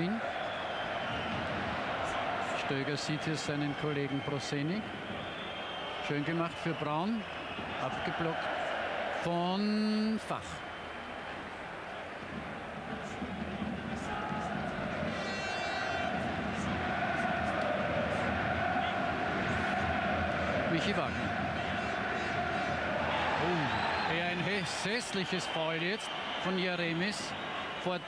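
A large stadium crowd roars and chants steadily in the open air.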